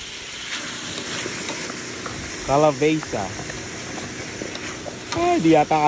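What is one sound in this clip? Chopped vegetables tumble into a pan.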